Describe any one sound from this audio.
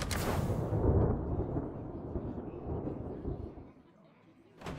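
A game rumbles with a loud impact as a match ends.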